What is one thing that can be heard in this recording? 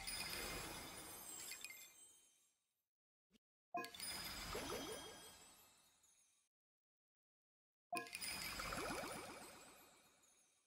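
Bright, sparkly magical chimes play in short bursts, each one ringing out and fading.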